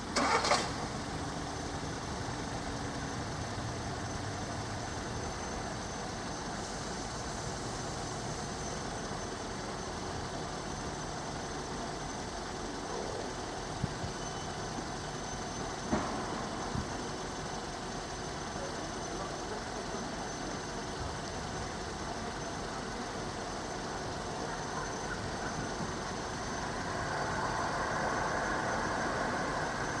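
An electronic level crossing alarm sounds continuously outdoors.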